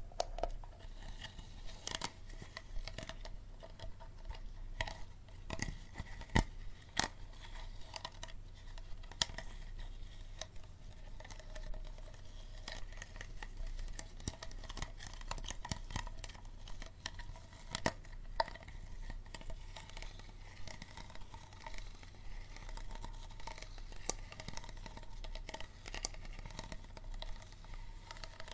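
Fingers crinkle and tap a plastic bottle close up.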